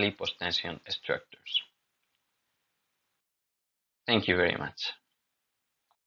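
A young man speaks calmly into a close microphone, as in an online talk.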